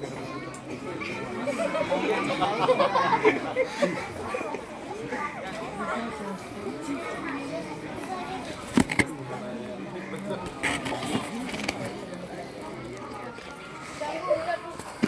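A child speaks through a microphone and loudspeakers.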